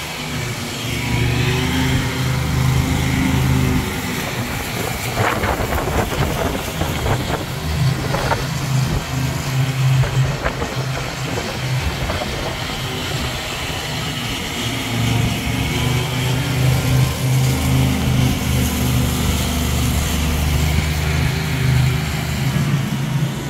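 Wind buffets the microphone with a low rumble.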